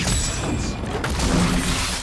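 A magic blast explodes with a loud burst.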